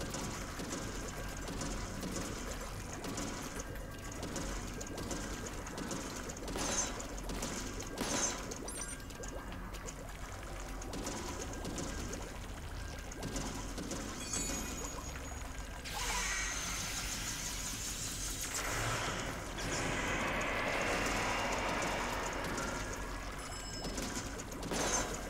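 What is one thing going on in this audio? Game sound effects splatter and whoosh throughout.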